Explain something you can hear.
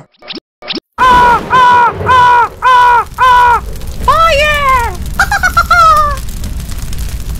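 A man yells in alarm, in loud rising and falling cries.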